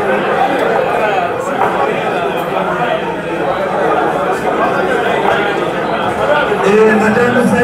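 A crowd of men chatters all around.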